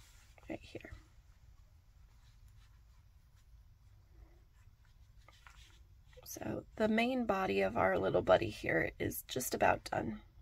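Soft yarn rustles faintly as thread is pulled through it.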